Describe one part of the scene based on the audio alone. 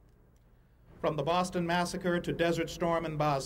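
A man speaks steadily into microphones, heard through a public address system.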